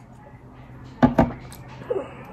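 A plastic bottle knocks against a table.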